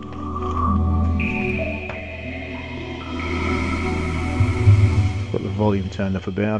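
A bright electronic startup chime plays, swells and fades.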